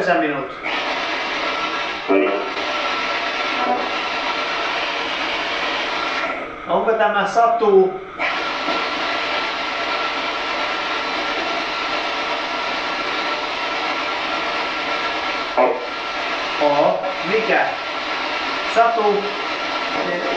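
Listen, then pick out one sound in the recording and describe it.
A young man speaks quietly, asking questions.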